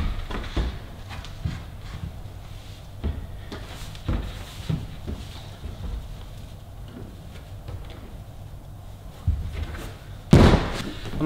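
Hands and feet knock softly against climbing holds.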